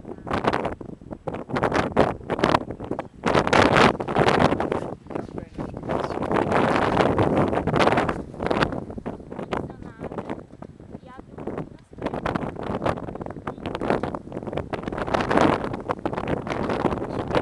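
Wind gusts loudly across the microphone outdoors.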